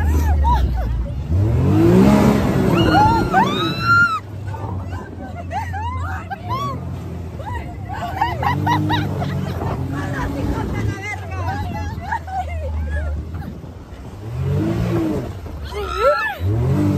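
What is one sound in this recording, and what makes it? Young women talk and laugh excitedly close by.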